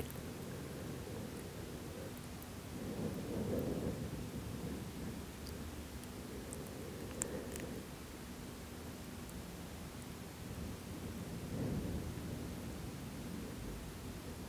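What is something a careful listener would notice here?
A person lying down breathes slowly and deeply.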